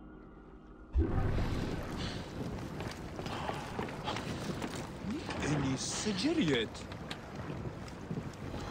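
Water splashes and laps against a wooden boat.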